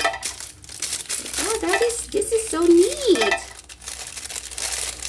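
Plastic wrap crinkles between fingers.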